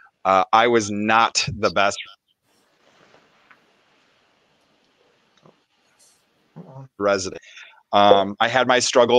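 A man speaks calmly through a headset microphone over an online call, pausing between phrases.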